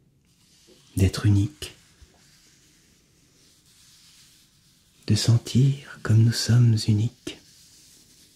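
A young man speaks softly and closely into a microphone.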